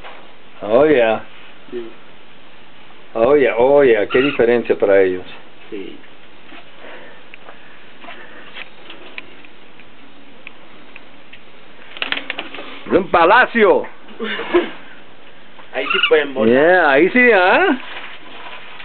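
A young man shouts loudly in short bursts, close by.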